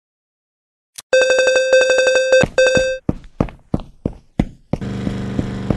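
A video game's bright chiming jingle plays.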